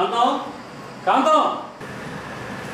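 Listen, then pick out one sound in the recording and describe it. A man speaks cheerfully nearby.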